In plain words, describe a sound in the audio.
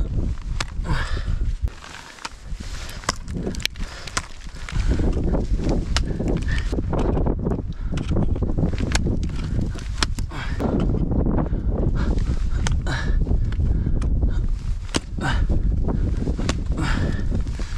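Ice axes strike hard ice with sharp thuds.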